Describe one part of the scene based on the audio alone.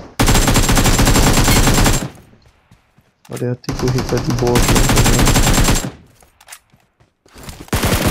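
Automatic gunfire rattles in fast bursts.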